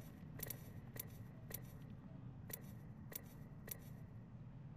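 Short menu clicks tick several times in quick steps.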